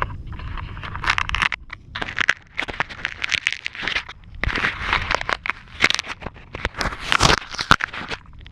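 Fingers rub and tap on a plastic casing very close by, with loud scraping and knocking.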